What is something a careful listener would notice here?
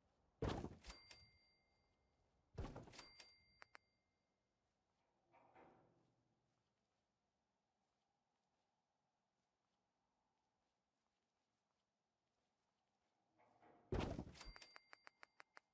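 A piece of furniture drops into place with a thud and a bright chime.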